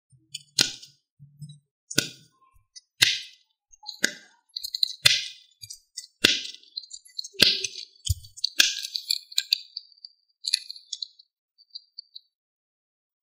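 Silicone bubbles pop with soft clicks as fingers press them.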